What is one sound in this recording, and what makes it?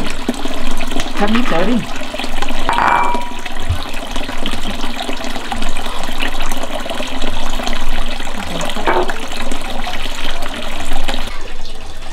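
Water pours steadily from a pipe and splashes into a full basin.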